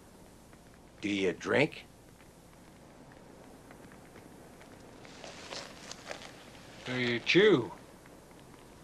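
A second man answers in a low, raspy voice.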